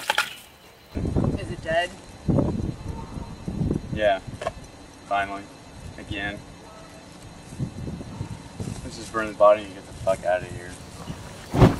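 A man speaks calmly outdoors, nearby.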